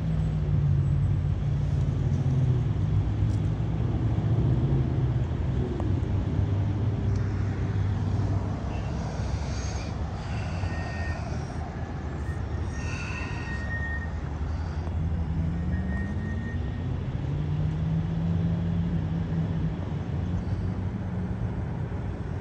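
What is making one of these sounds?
A vehicle engine idles with a low steady hum.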